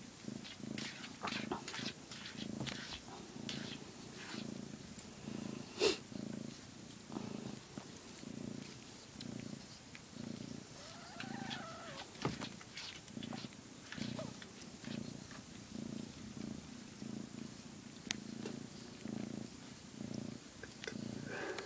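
A cat purrs loudly and steadily close by.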